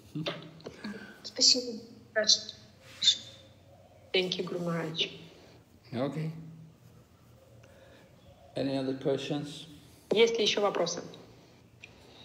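An elderly man talks calmly and close by, in short bursts with pauses.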